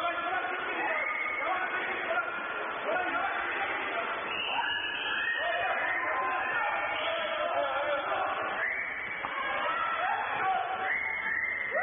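Water splashes as swimmers thrash about in an echoing indoor pool.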